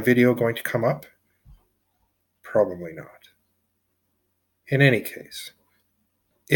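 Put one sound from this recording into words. A man speaks calmly in short phrases, close to the microphone.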